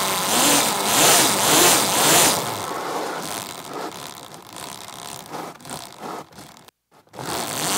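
An electric quad's motor whines as it speeds up.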